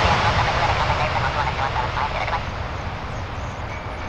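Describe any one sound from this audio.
Tyres screech as an airliner touches down on a runway.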